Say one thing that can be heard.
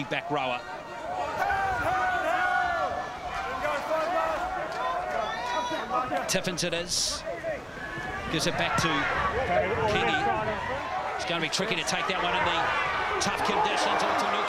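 A crowd murmurs in an open stadium.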